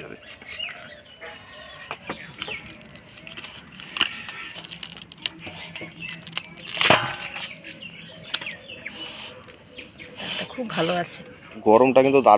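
A fibrous husk tears and crackles as it is peeled by hand.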